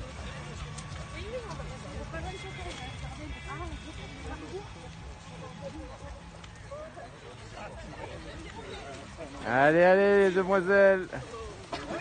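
Runners' feet thud softly on wet grass.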